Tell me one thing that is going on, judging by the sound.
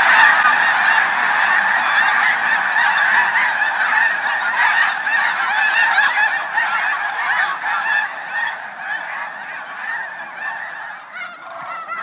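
A huge flock of geese honks loudly as the birds take off and fly overhead.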